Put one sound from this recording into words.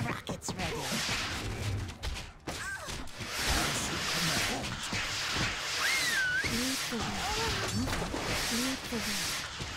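Horses neigh and gallop.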